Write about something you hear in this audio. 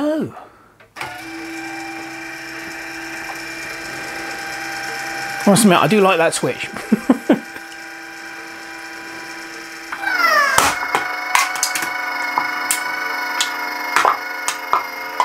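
A small motor runs with a steady whirring hum that grows louder.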